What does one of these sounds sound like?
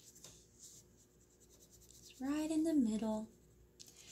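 A crayon scratches softly across paper.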